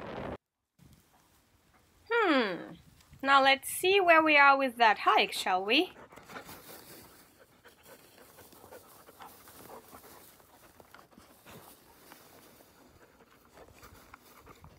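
Dogs rustle through dry grass and heather.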